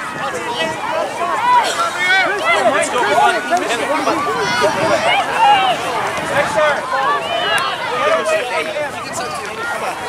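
Many young voices shout and call out across an open field.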